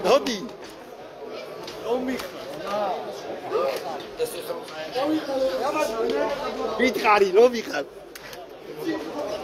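A crowd of men talk and shout excitedly nearby.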